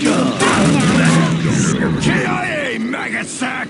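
An assault rifle fires in a video game.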